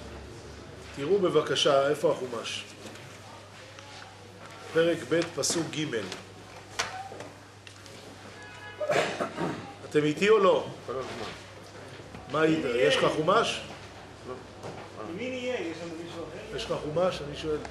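A middle-aged man speaks steadily into a microphone, in bursts with pauses.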